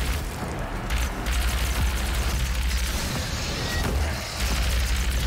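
A plasma gun fires rapid crackling bursts.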